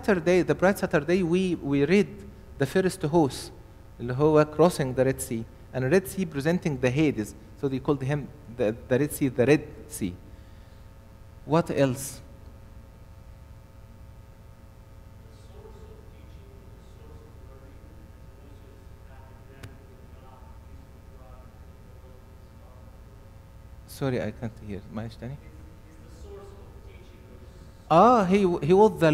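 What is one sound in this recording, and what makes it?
A man speaks calmly into a microphone, heard through loudspeakers in an echoing hall.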